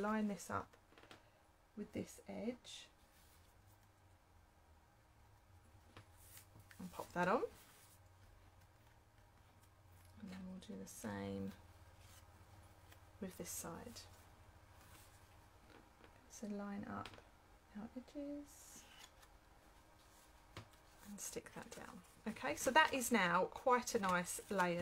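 Hands slide and shuffle card stock.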